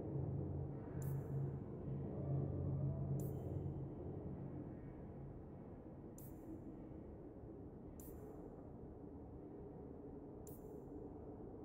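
A menu cursor ticks with a short, bright click each time the selection moves.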